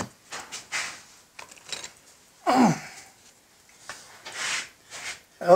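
A hand brushes and scrapes sand off a hard surface in short strokes.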